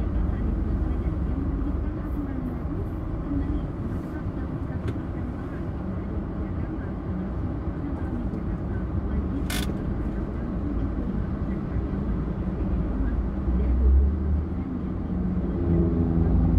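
Traffic rumbles steadily all around on a busy road.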